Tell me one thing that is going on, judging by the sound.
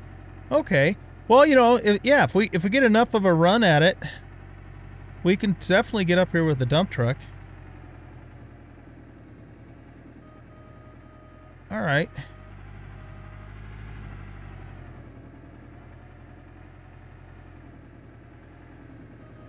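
A heavy truck engine rumbles steadily.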